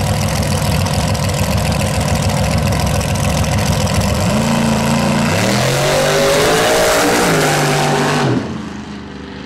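A drag racing car's engine roars loudly and revs up through its gears as it launches.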